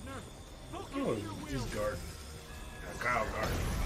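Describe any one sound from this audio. A man laughs close by.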